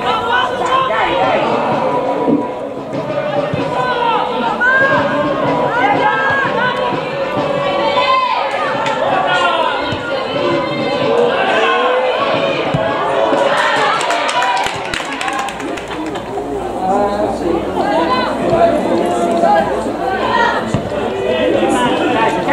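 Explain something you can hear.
Football players call out to one another across an open pitch outdoors.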